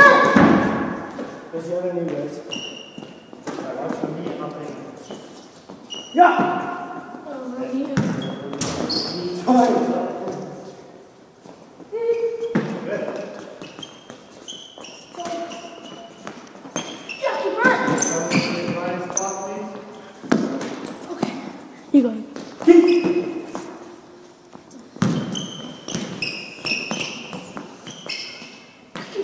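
A ball thuds against a wall and hands.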